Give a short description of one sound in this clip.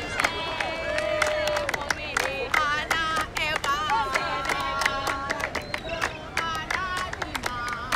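A crowd of young women cheers.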